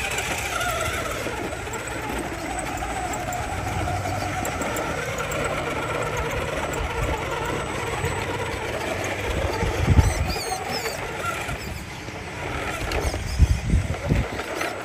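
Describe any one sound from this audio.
Plastic tyres grind and scrape on rough stone.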